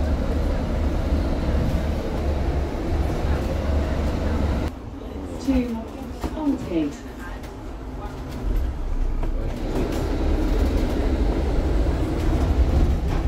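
A bus engine rumbles low and steadily while the bus drives along.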